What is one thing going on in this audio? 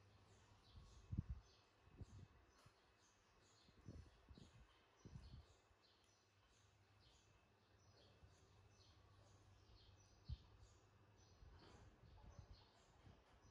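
A hollow plastic toy bumps and knocks softly.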